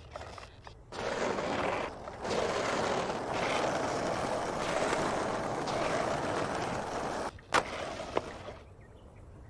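Skateboard wheels roll and rumble over rough pavement.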